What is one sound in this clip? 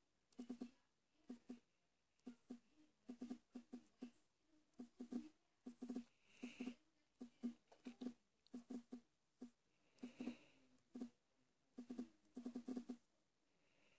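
A phone gives off quick, soft clicks again and again.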